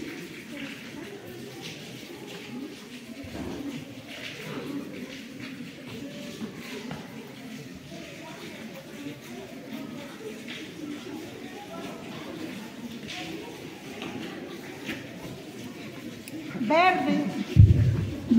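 A large crowd murmurs and chatters in a wide open space.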